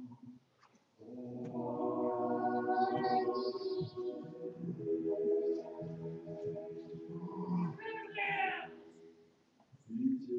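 Men chant together in a sung, pitched voice.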